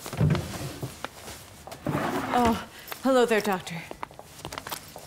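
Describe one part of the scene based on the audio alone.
A middle-aged woman speaks with surprise, close by.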